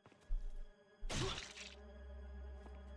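A blade stabs through flesh with a wet squelch.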